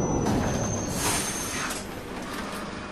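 A bus door opens with a pneumatic hiss.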